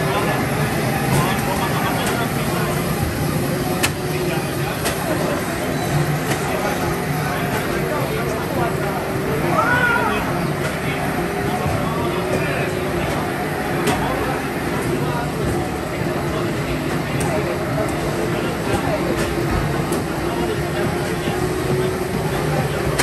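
Racing game engines roar and hum loudly from arcade cabinets.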